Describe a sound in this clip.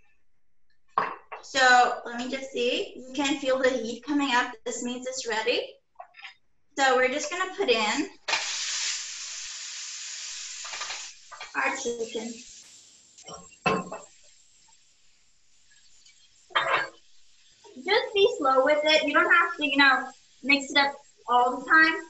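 A young woman talks calmly and clearly, close by.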